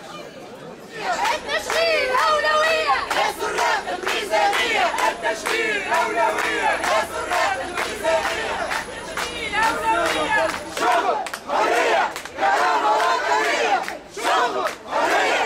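A crowd of men and women chants loudly in unison.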